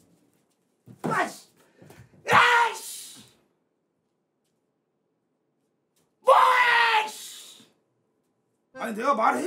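A man shouts loudly and excitedly close by.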